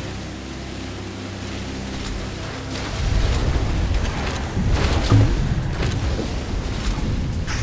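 A jet ski engine buzzes steadily.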